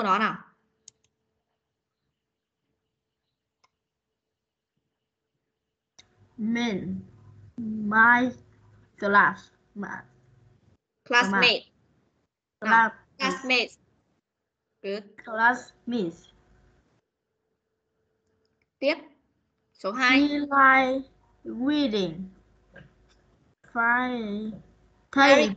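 A woman speaks slowly and clearly over an online call, pausing between phrases.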